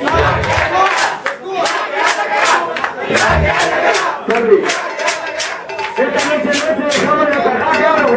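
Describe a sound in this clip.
A crowd claps hands in rhythm.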